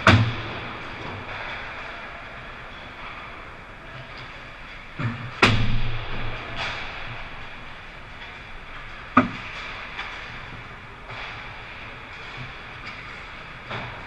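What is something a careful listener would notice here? Hockey pucks clack sharply against sticks and boards, echoing in a large rink.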